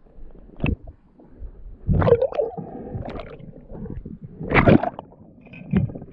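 Water splashes as the surface breaks.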